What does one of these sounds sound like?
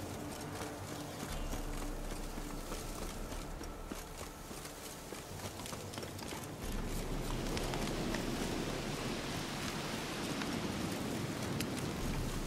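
Wind rustles through trees.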